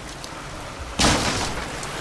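A pistol fires a loud shot.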